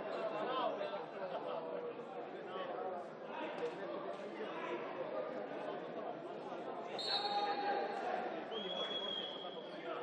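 A crowd of spectators chatters loudly, echoing through a large indoor hall.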